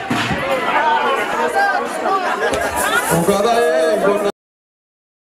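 A crowd of women sing and chatter loudly in an echoing hall.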